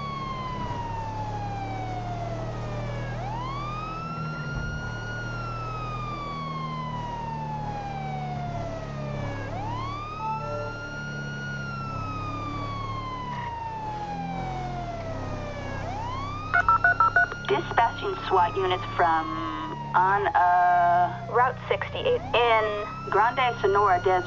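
A siren wails, rising and falling slowly.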